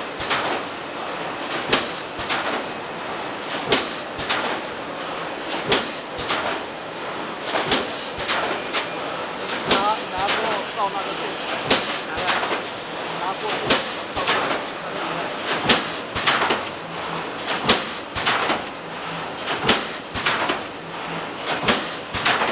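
A forming machine clanks and thumps in a steady rhythm about every two seconds.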